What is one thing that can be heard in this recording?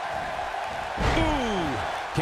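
A body thuds onto a wrestling ring mat.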